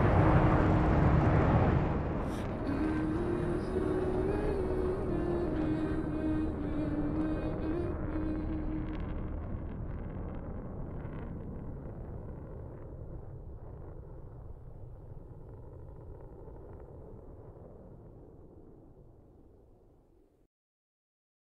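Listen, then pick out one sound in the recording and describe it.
Jet engines roar steadily and slowly fade.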